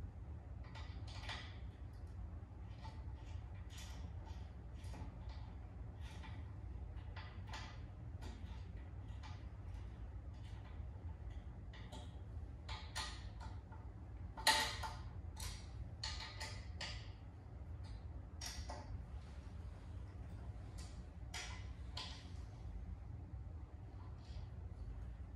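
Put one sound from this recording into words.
A plastic knob clicks and rattles as it is turned by hand.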